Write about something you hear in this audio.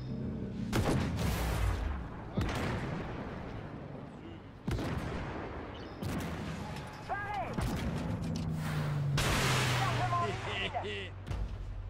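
Shells explode nearby.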